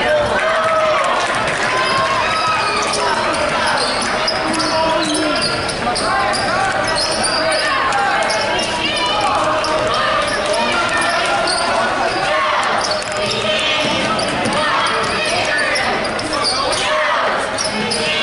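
Sneakers squeak sharply on the wooden court.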